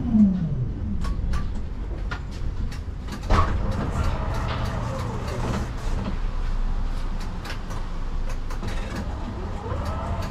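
Tram wheels click and clatter over rail joints.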